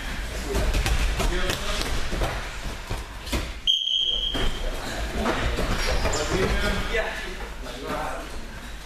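Voices of young people chatter in a large echoing hall.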